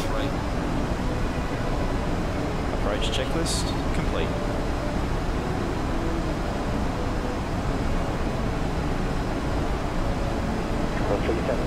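Jet engines drone steadily with a low roar.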